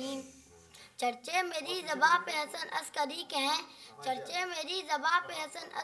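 A young boy recites through a microphone.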